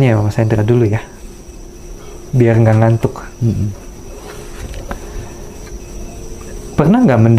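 A man speaks calmly and close by into a clip-on microphone.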